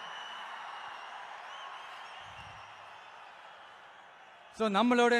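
A man speaks into a microphone, heard over loudspeakers.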